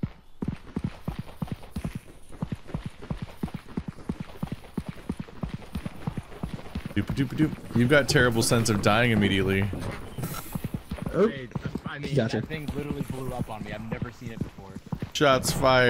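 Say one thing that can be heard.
Footsteps patter quickly and steadily.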